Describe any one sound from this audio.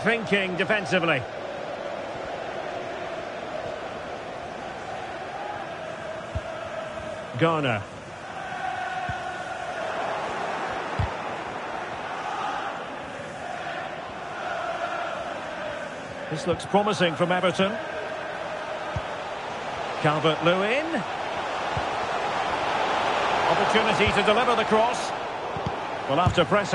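A large crowd murmurs and cheers steadily, swelling louder near the end.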